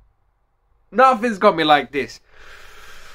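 A young man speaks in a shaky, tearful voice, close by.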